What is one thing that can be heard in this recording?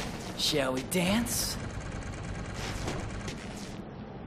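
A laser barrier hums and crackles.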